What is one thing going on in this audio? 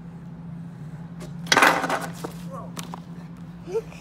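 A metal scooter clatters onto pavement.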